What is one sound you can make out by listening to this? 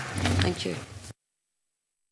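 A man speaks calmly through a microphone and is abruptly cut off.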